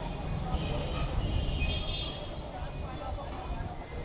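A busy city hums steadily with distant traffic far below.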